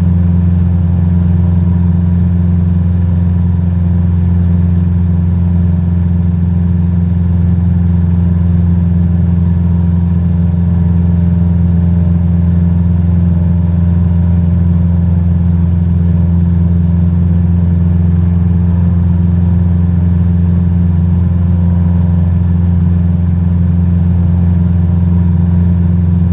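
A small propeller plane's engine drones steadily in flight.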